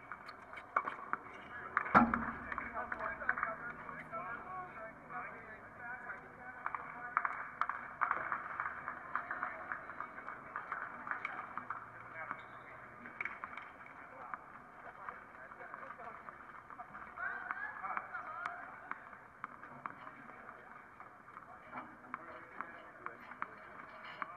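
Tennis balls are struck with rackets.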